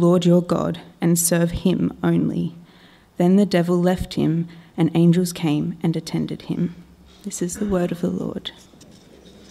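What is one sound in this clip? A young woman reads aloud into a microphone, heard through a loudspeaker in an echoing hall.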